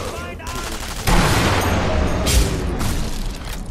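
A loud explosion booms and rumbles.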